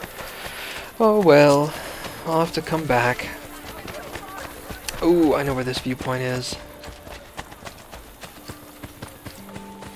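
Quick footsteps run across stone ground.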